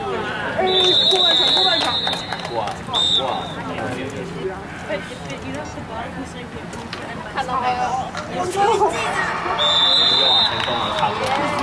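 A referee's whistle blows sharply a few times.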